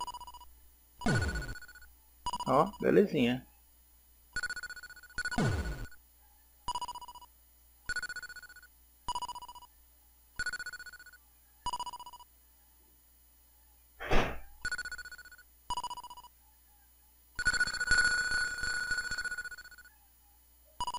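Short electronic zaps and rumbling game effects sound now and then.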